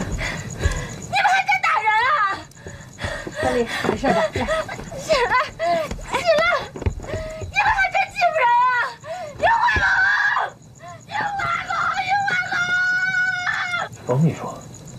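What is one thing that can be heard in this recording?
A young woman sobs and shouts through tears.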